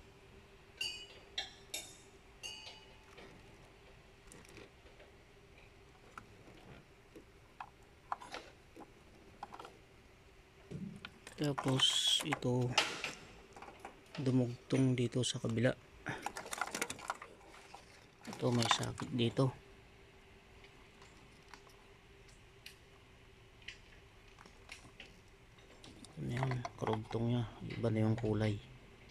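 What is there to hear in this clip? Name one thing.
Plastic connectors click faintly.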